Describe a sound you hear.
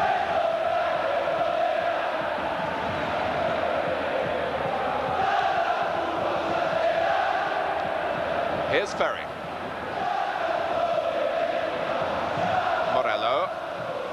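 A large stadium crowd roars and chants steadily, outdoors.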